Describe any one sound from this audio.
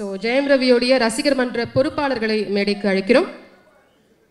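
A young woman speaks into a microphone over a loudspeaker, announcing with energy.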